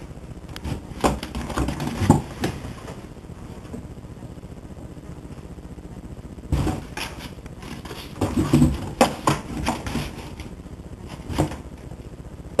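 Cardboard thumps and rustles as a kitten pushes against a box.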